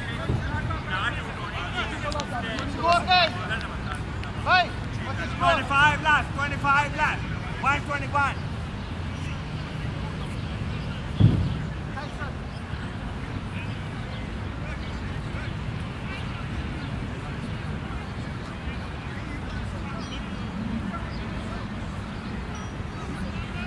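Wind rumbles steadily outdoors across an open field.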